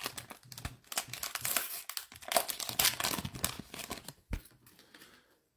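A foil card pack crinkles and tears open by hand.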